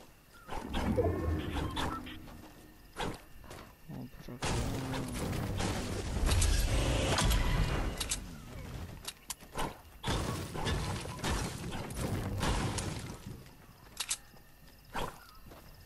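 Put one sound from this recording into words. A pickaxe strikes hard objects in a video game.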